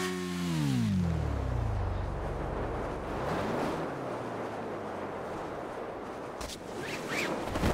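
Wind rushes past during a fall.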